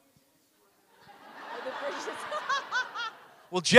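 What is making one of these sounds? An audience laughs and cheers loudly.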